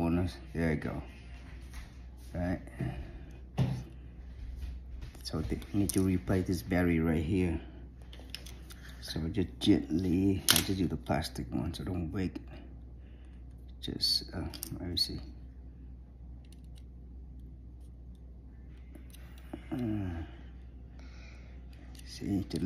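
Plastic parts of a small remote click and snap.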